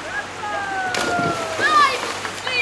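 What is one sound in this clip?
A child jumps into the water with a splash.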